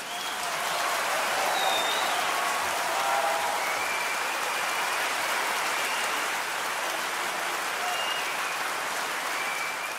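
A woman laughs into a microphone in a large echoing hall.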